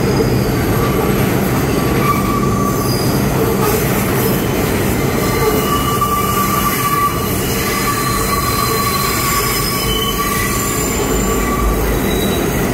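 Train brakes squeal as the train slows down.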